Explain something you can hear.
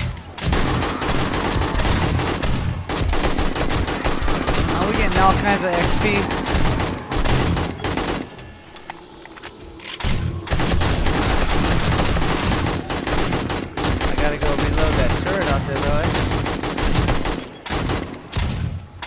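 Rapid gunfire rattles loudly from a game.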